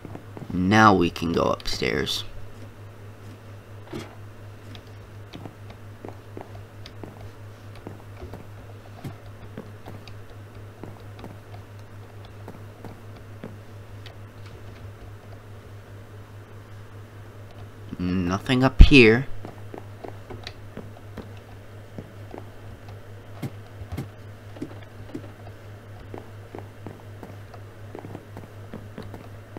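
Footsteps tap softly on wooden and stone floors.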